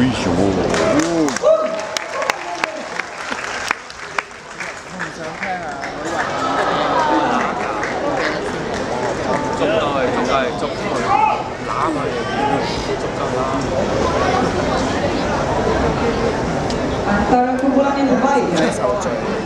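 A crowd of spectators chatters close by in a large open stadium.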